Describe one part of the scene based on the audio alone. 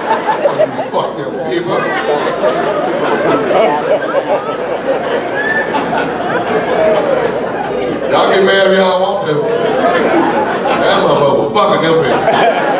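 A man speaks with animation into a microphone, heard through loudspeakers in a hall.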